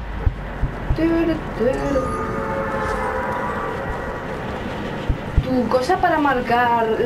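A melodic game chime plays.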